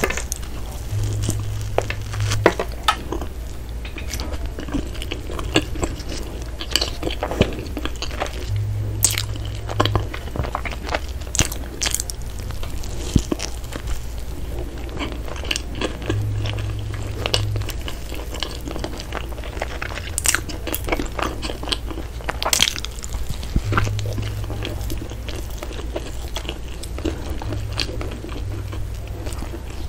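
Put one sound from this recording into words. A woman chews soft bread close to a microphone with wet, smacking mouth sounds.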